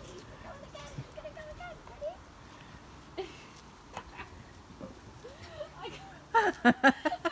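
Puppies whine and yip softly.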